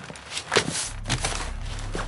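Sheets of paper rustle as a hand shuffles them.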